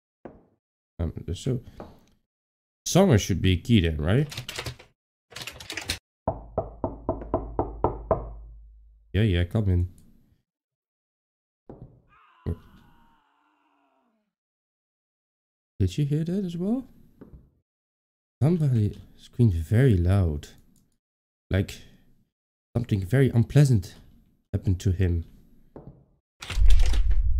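A young man talks calmly and close to a microphone.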